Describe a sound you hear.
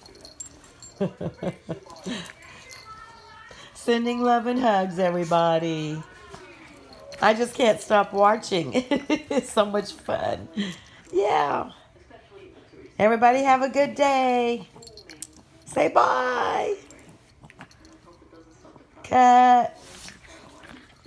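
Two small dogs growl and snarl playfully at close range.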